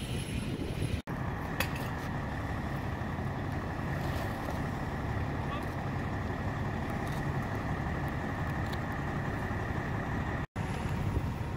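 A fire engine's pump whines steadily.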